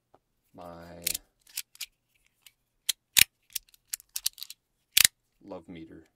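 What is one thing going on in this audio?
Small plastic fidget toys click sharply under fingers.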